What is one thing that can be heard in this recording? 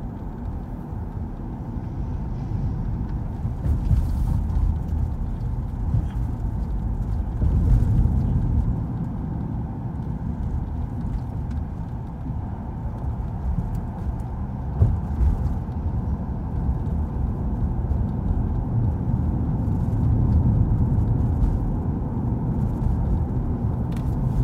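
A car's engine hums and its tyres roll steadily on the road, heard from inside the car.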